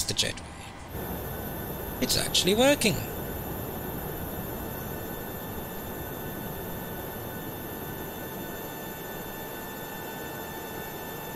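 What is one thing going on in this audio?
A jet engine hums and whines steadily nearby.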